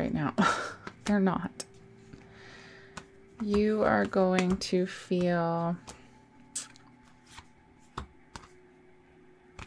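Cards rustle and slap softly as a hand shuffles them.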